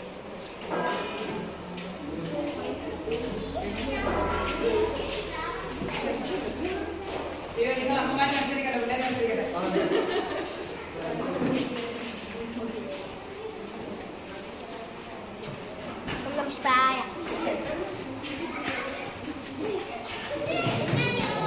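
Women talk in the background.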